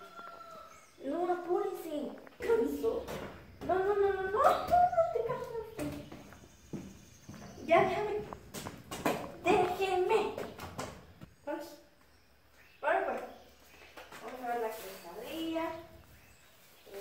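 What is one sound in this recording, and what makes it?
A young woman talks to a puppy in a high, playful voice nearby.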